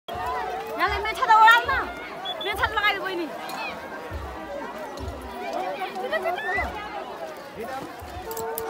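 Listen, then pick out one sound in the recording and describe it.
A crowd of people outdoors shouts and calls out excitedly.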